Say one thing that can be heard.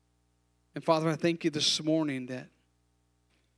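A man speaks calmly into a microphone through loudspeakers.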